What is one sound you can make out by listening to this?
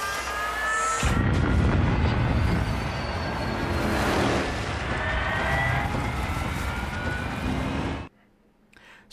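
A speedboat engine roars across water.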